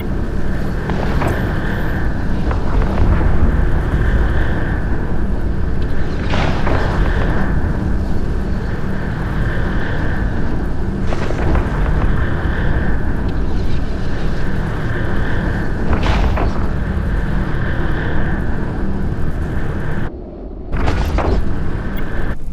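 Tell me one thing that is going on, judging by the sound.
Heavy guns fire in repeated bursts, each with a sharp crack.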